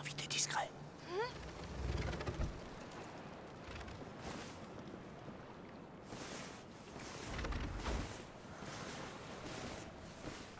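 Footsteps shuffle and scrape over rocky ground.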